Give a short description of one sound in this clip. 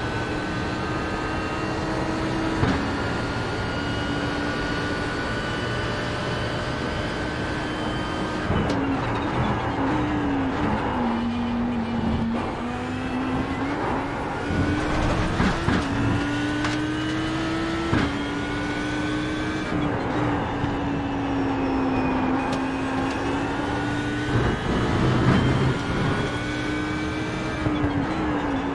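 A race car engine roars steadily, rising in pitch as it speeds up and dropping sharply on each gear change.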